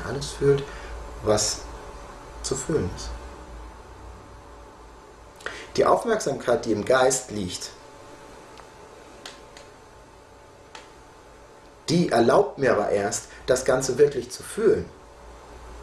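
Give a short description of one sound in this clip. A middle-aged man speaks calmly and close by, in short phrases with pauses.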